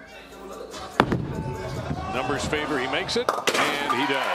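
A bowling ball thuds onto the lane and rolls.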